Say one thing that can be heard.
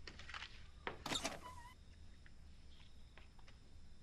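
A door latch clicks and a door creaks open.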